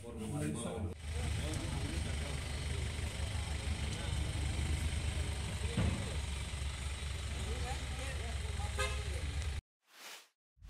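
A truck engine idles with a steady rumble.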